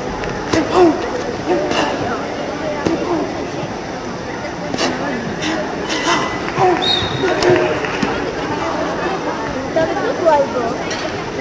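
Men and women chatter faintly in a large echoing hall.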